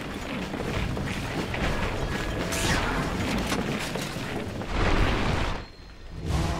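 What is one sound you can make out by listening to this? Game sound effects of clashing weapons and spell blasts crackle during a fight.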